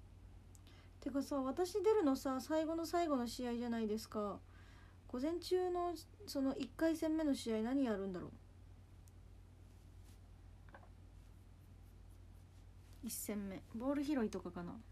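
A young woman speaks softly and with animation close to a microphone.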